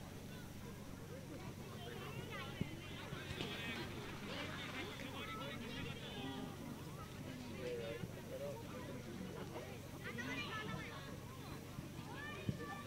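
Children shout and call out excitedly across an open field.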